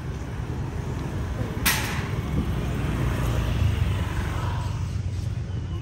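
A motorbike engine hums as it passes close by.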